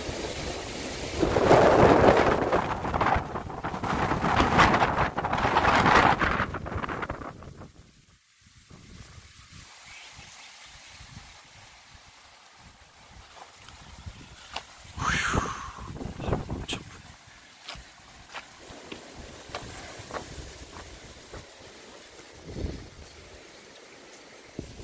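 Wind rustles through dense bamboo leaves outdoors.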